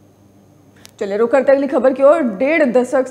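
A woman speaks clearly and evenly, reading out into a microphone.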